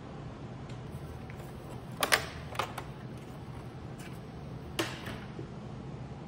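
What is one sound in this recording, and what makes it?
Plastic casing clicks and knocks as a panel is pried off.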